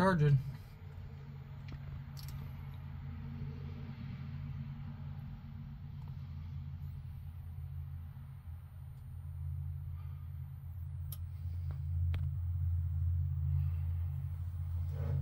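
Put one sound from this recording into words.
A battery charger hums low and steadily.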